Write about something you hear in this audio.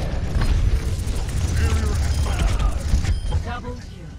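An electric beam weapon crackles and buzzes loudly.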